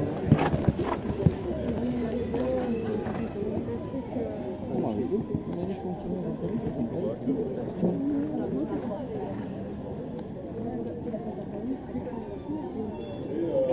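A horse canters on sand.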